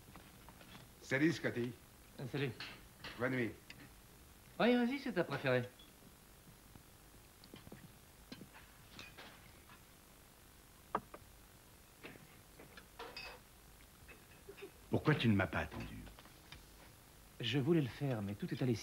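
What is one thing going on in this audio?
A man speaks firmly in a quiet room.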